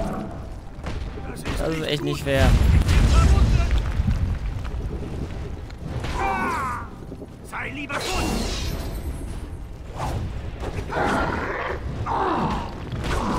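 Magic spells crackle and burst.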